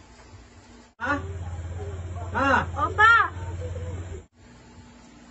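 A young woman speaks loudly and with animation close by.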